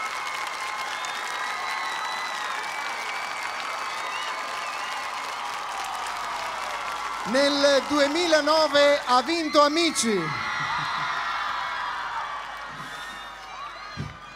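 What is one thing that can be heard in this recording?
A large crowd cheers and chatters in a big open space.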